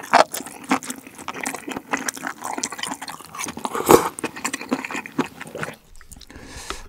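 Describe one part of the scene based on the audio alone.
A young man slurps noodles loudly, close up.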